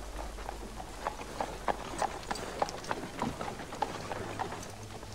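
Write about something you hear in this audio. Horse hooves clop on a street.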